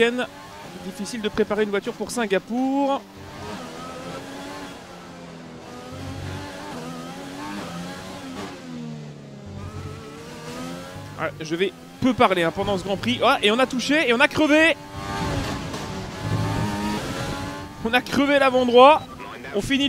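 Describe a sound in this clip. A racing car engine whines loudly, its pitch rising and falling as it speeds up and slows down.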